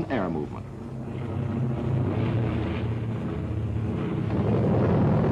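Propeller plane engines drone steadily overhead.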